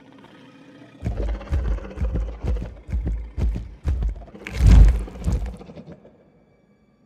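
Heavy footsteps thud nearby.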